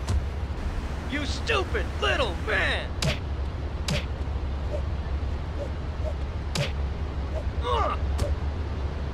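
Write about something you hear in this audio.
A woman screams in pain.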